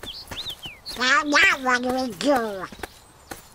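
A male cartoon duck voice speaks in a squawky, quacking tone close by.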